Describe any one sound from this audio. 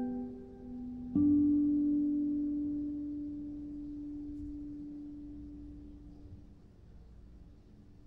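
A nylon-string guitar plays a few notes that ring out and slowly fade.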